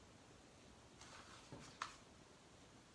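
A wooden plaque bumps and knocks lightly as it is shifted.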